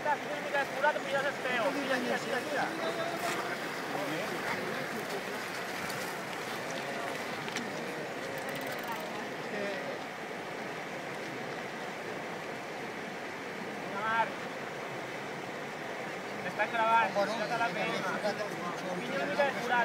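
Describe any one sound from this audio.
Water rushes steadily over a shallow ford.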